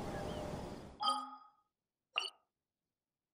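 A soft menu chime sounds as a map opens.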